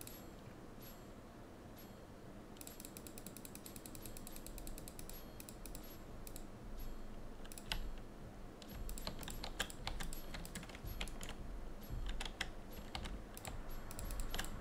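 A game's menu buttons click with short, sharp ticks, faster and more often as the stretch goes on.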